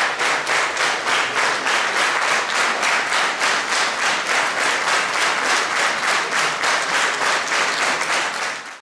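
A large audience claps in steady rhythm in an echoing hall.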